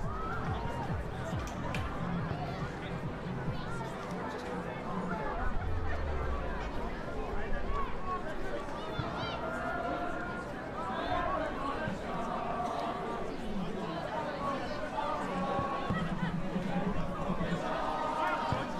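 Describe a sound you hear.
A large crowd of men and women cheers and shouts outdoors.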